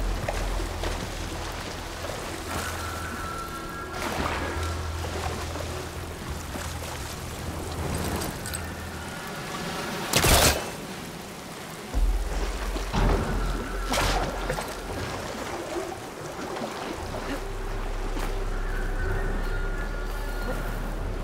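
Water laps gently all around.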